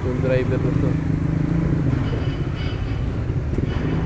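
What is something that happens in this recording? A motorbike engine revs as it passes.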